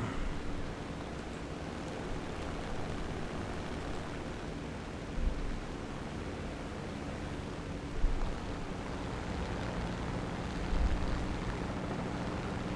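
A propeller plane's engine drones steadily.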